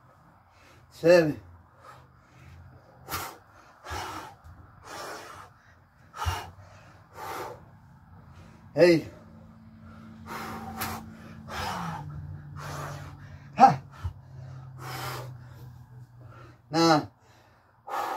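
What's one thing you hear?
A man grunts with effort.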